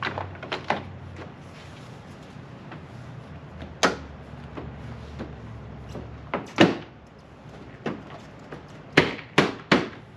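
Plastic parts click and knock sharply on a truck's front end, heard outdoors.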